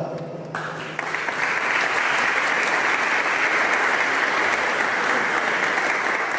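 A crowd applauds steadily.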